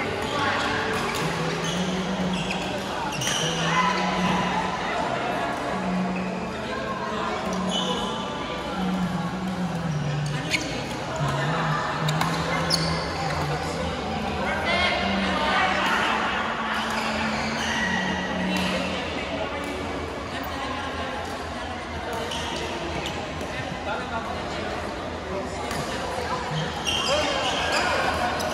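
Sports shoes squeak sharply on a hard court.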